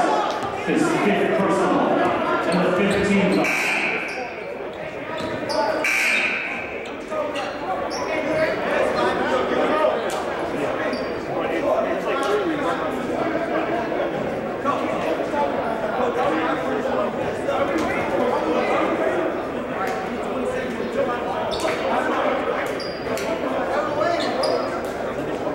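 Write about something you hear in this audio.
Voices chatter throughout a large echoing gym.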